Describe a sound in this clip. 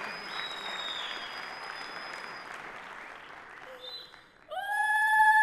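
A woman laughs heartily.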